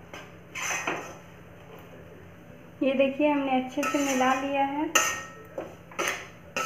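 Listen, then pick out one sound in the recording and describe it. A metal spatula scrapes and stirs crumbly dough in a metal pan.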